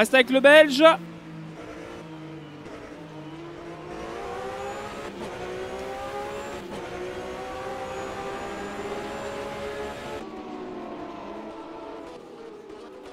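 A racing car engine drones loudly, rising and falling in pitch as it speeds up and shifts gears.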